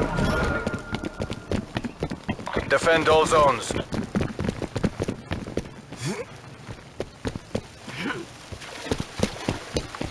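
Quick footsteps tap on hard ground.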